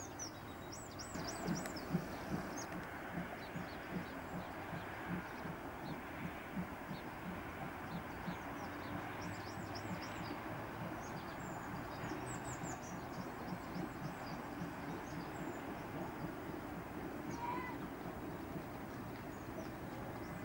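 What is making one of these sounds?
A steam locomotive chuffs steadily in the distance.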